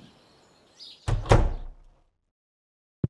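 A door opens and shuts.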